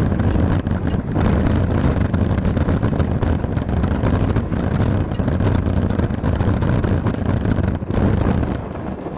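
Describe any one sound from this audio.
Bicycle tyres roll and rattle over rough pavement.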